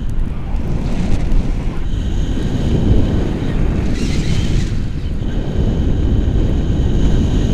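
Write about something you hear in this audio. Strong wind rushes and buffets loudly against a microphone.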